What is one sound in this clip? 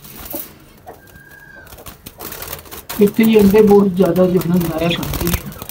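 A wire cage rattles and clinks under a hand.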